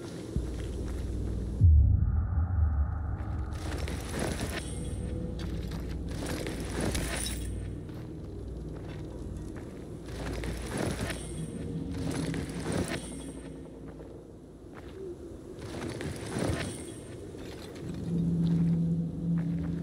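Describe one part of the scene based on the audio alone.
Tall grass swishes and rustles with footsteps.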